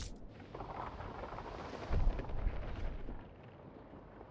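Sea waves wash softly.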